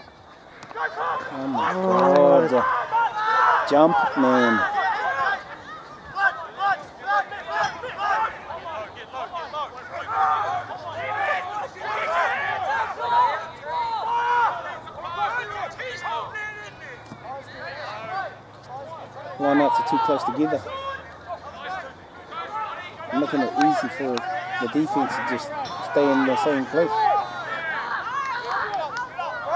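Men shout to each other outdoors, loudly and with urgency.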